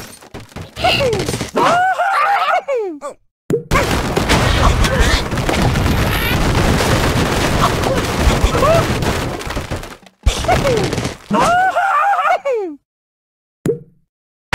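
A cartoon bird squawks as it flies through the air.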